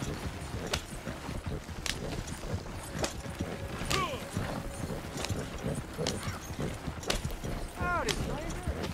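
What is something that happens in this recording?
Horse hooves clop steadily on a dirt track.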